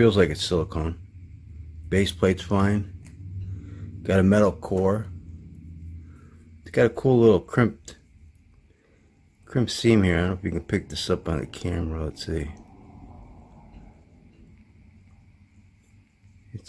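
Small metal parts clink softly as they are handled.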